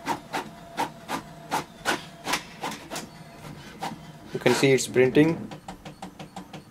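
A printer clicks and knocks in a quick, steady rhythm.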